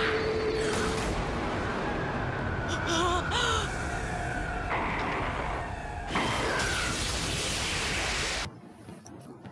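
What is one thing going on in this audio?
An energy blast roars and crackles.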